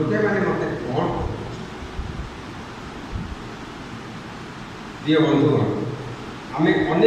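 A man preaches through a microphone and loudspeakers, speaking in bursts with pauses, in an echoing room.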